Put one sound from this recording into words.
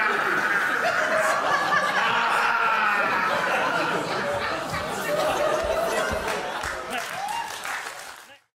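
A man screams a long, drawn-out cry.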